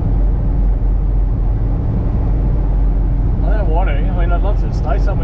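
Tyres crunch and rumble over a dirt road.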